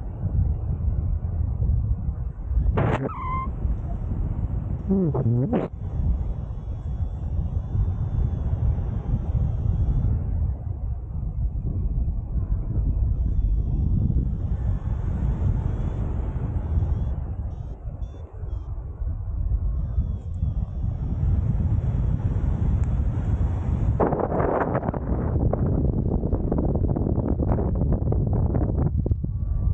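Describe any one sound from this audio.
Wind rushes past a paraglider pilot in flight, buffeting the microphone.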